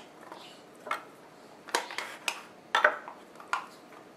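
A knife cuts through dough and taps on a wooden board.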